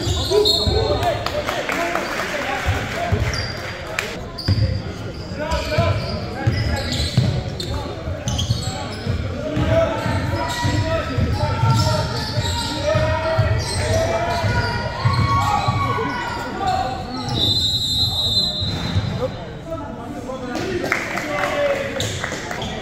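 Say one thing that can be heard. Young men shout and call out to each other across the court.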